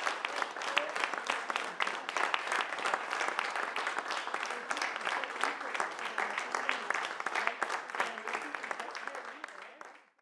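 An audience claps and applauds in a room with some echo, then fades out.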